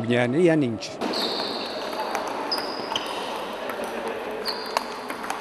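Table tennis balls click against paddles and the table.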